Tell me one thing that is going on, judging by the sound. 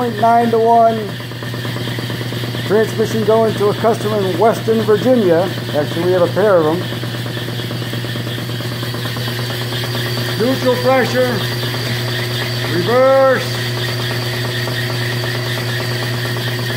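A motor hums steadily.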